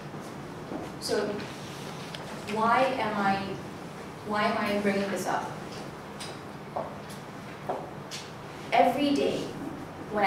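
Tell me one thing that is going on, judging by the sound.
A young woman speaks calmly, with pauses.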